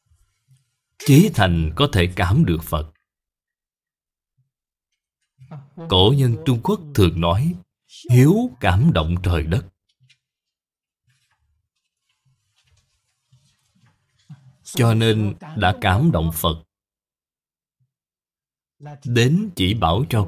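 An elderly man speaks calmly and slowly into a close microphone, in phrases with long pauses.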